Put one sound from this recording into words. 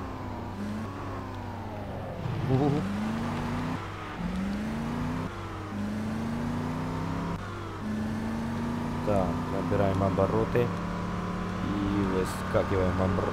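A buggy engine hums and revs, rising in pitch with each gear change.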